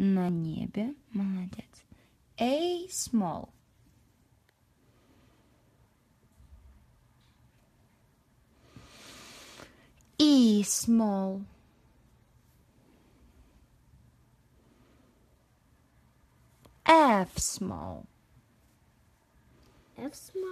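A young girl speaks close by, in short bursts.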